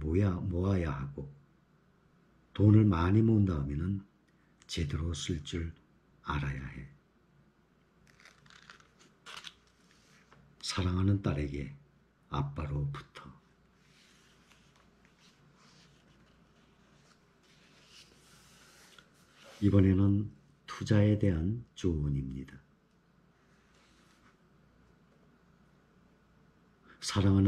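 A man reads aloud calmly and close by, in short phrases with pauses.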